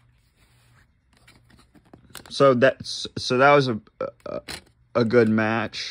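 A disc clicks as it is pried from a plastic case.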